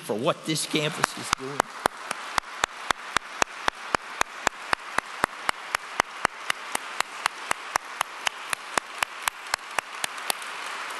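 An elderly man claps his hands steadily.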